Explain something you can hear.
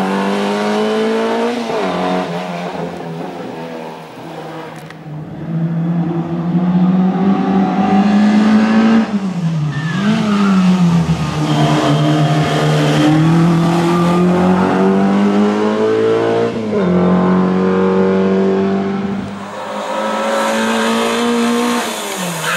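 A rally car engine roars and revs hard, rising and dropping in pitch as gears change.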